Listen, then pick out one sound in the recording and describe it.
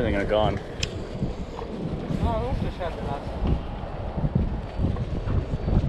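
A fishing reel clicks as line is wound in.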